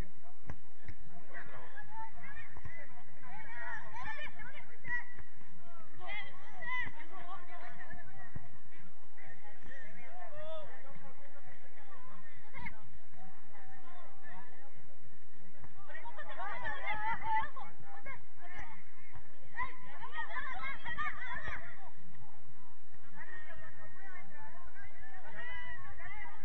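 Young women shout and call to each other across an open outdoor field.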